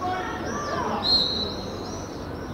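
A referee's whistle blows once, short and shrill.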